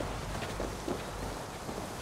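Water rushes down a waterfall nearby.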